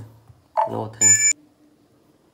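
A mobile game plays a bright jingle.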